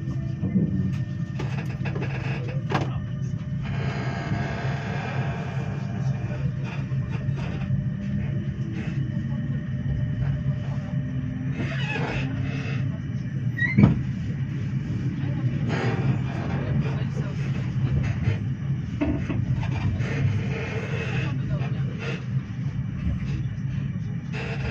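Train wheels click and knock over the rail joints.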